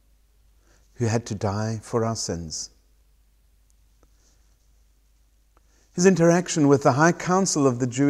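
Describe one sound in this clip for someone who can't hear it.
A man speaks calmly and close by, with pauses between phrases.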